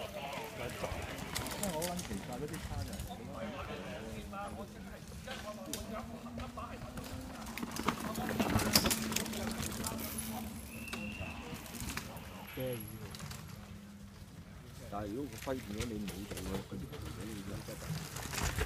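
Bicycle tyres crunch on a dirt trail.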